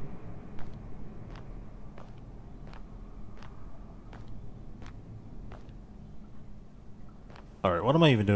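Slow footsteps echo on a hard floor.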